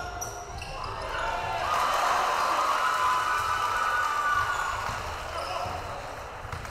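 A crowd cheers loudly in an echoing gym.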